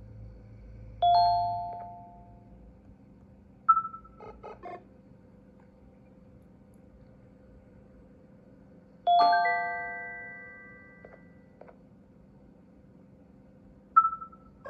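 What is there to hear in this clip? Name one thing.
A tablet game plays short bright chimes that ring out and fade.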